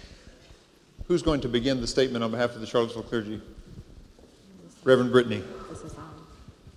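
A man speaks loudly into a microphone in a large echoing hall.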